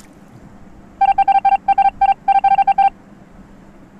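Short electronic beeps sound in quick succession.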